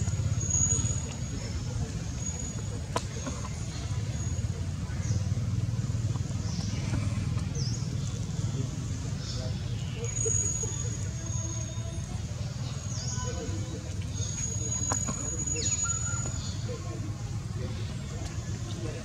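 A baby monkey scratches softly at dry soil.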